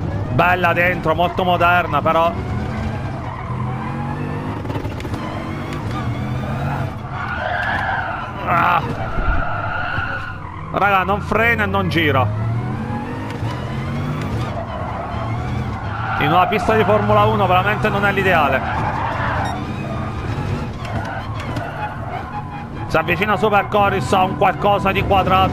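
A racing car engine revs hard and climbs through the gears.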